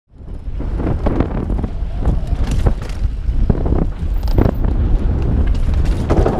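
Bike tyres crunch and skid over a rough dirt trail.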